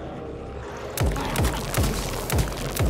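A gun fires several loud shots in quick succession.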